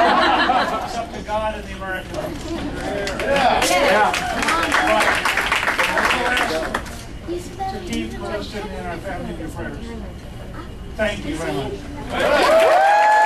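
An elderly man speaks into a microphone over a loudspeaker.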